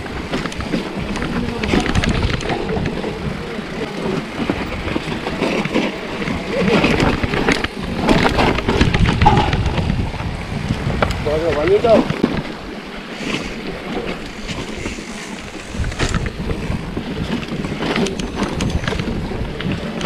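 A mountain bike rattles and clatters downhill over rocks and dirt.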